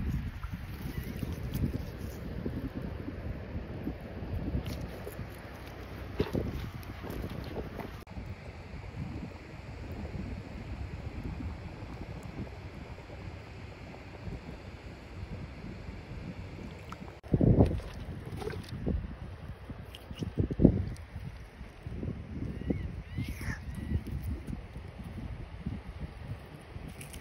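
Shallow water laps gently at the shore.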